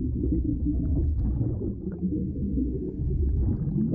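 Air bubbles gurgle and rise from a diver's regulator.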